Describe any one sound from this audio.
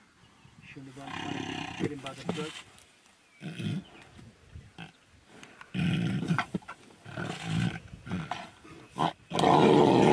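Tigers snarl and roar as they fight.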